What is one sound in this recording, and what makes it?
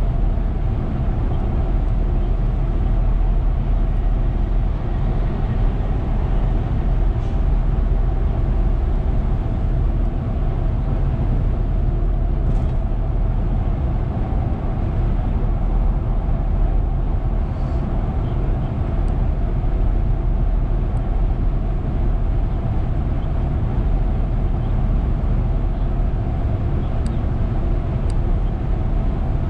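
A car drives fast along a highway with a steady low road rumble from inside.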